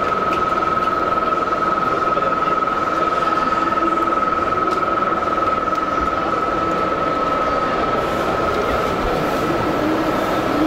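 A dough mixer whirs and hums steadily.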